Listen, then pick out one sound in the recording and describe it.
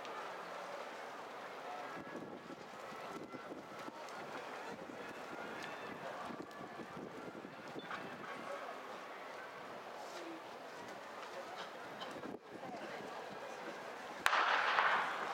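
Distant spectators murmur and chatter.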